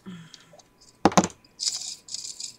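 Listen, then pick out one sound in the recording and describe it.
Small objects rattle and knock inside a container.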